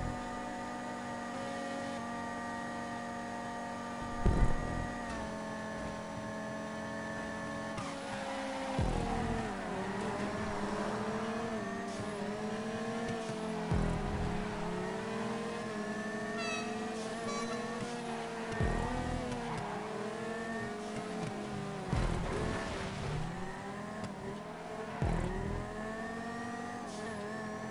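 A sports car engine revs high and shifts gears.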